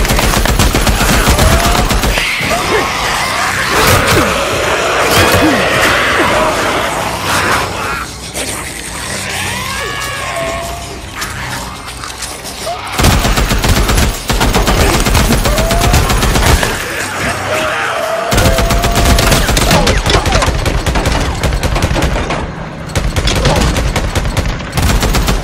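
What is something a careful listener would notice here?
A rifle fires in rapid bursts of loud shots.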